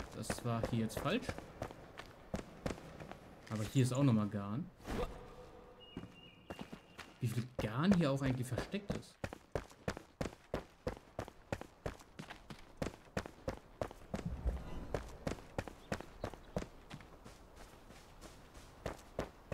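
Footsteps tap quickly on stone.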